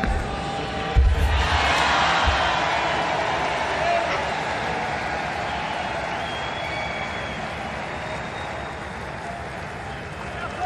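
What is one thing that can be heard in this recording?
A large crowd cheers loudly in a big open stadium.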